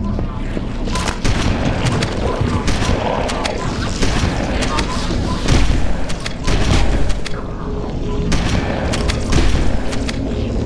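Gunfire and plasma blasts crackle in a loud, chaotic firefight.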